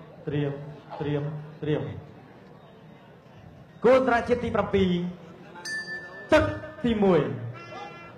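A man's voice calls out loudly in a large, echoing arena.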